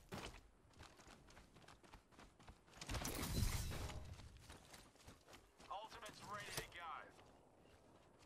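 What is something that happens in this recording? Footsteps thud quickly on the ground while running.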